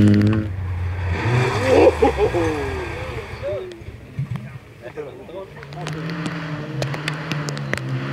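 Another rally car engine revs hard and roars as it drifts through a bend.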